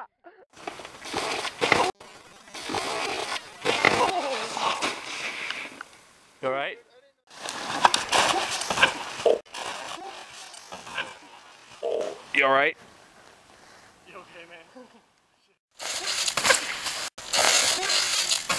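A snowboard scrapes and slides over snow.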